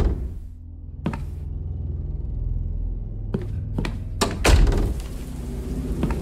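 Footsteps thud on a hard floor indoors.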